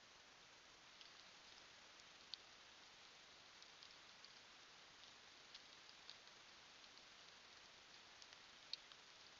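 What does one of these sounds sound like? A deer steps through leaf litter.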